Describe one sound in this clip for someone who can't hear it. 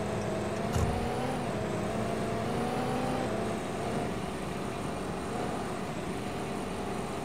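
A car engine hums steadily as the car speeds up along a road.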